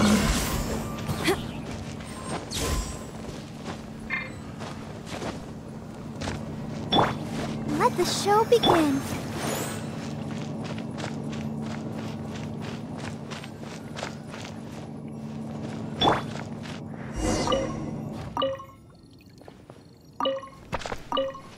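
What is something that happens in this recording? Magical attack effects whoosh and crackle in bursts.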